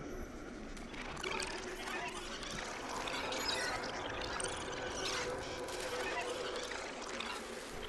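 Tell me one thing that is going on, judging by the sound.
A shimmering electronic hum crackles and swells.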